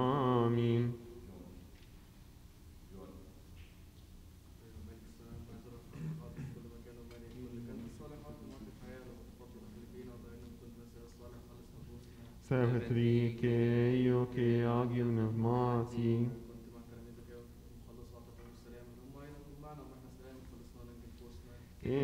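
A man reads out quietly in a large echoing hall.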